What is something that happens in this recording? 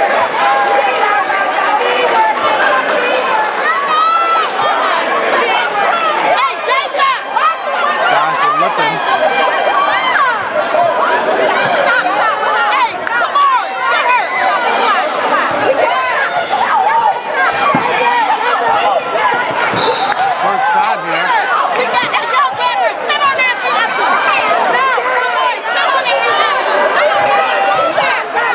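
A crowd of young people and adults chatters and calls out in a large echoing gym.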